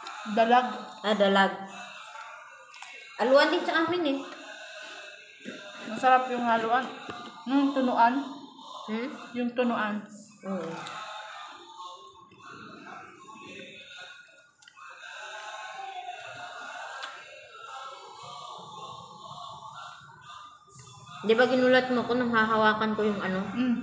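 A woman talks close by with animation.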